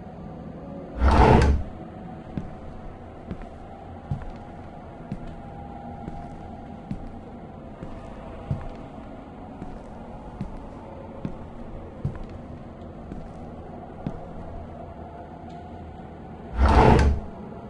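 A heavy wooden lid slams shut with a loud thud.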